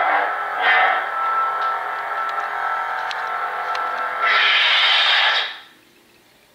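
A toy light saber hums steadily.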